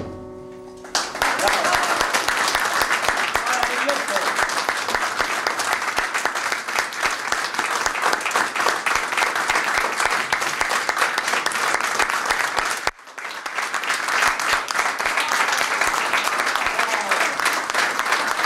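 A crowd claps along in a steady rhythm.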